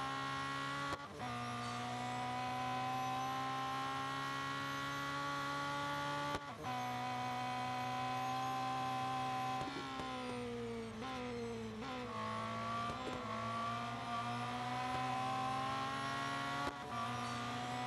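A racing car engine briefly cuts out and jumps in pitch as gears shift up.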